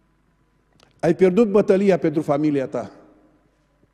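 A middle-aged man speaks emphatically through a microphone in a reverberant hall.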